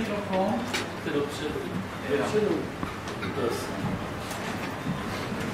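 A man speaks aloud to a group in a room with a slight echo.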